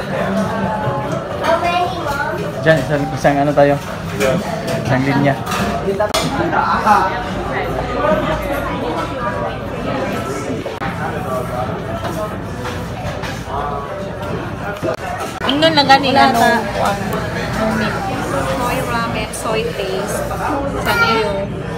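A crowd of men and women chatters nearby in a busy room.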